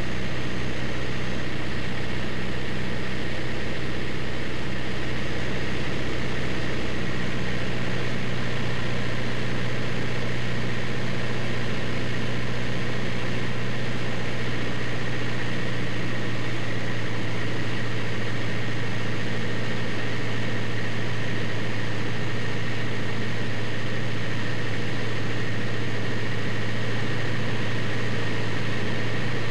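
Wind rushes past a small plane.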